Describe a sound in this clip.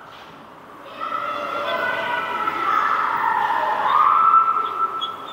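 A marker squeaks on a whiteboard as it writes.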